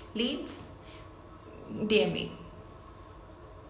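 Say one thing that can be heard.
A young woman speaks with animation close to the microphone.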